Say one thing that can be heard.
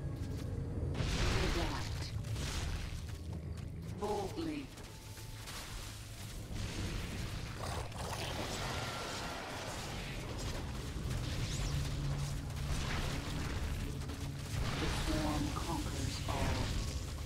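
Energy blasts crackle and zap in a noisy battle.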